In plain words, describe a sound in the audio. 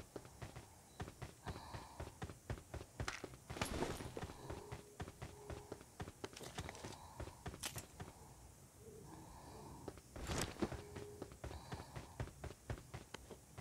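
Footsteps run across a hard roof.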